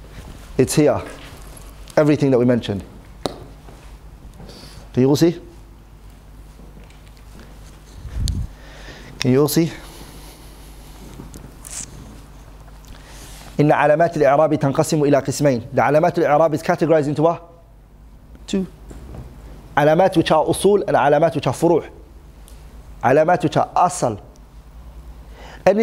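A man speaks calmly and clearly, in short bursts with pauses.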